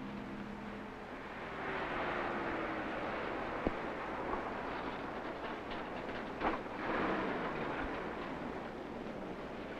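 A car drives along a road and passes by.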